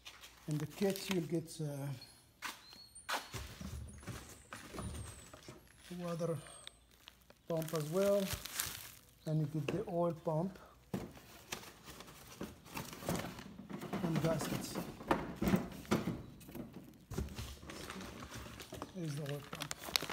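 Plastic bags crinkle and rustle as they are handled up close.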